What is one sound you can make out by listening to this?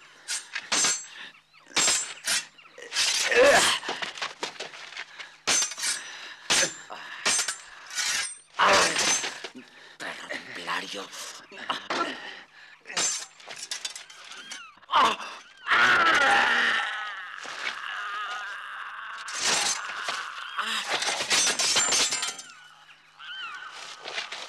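Men grunt and shout as they fight up close.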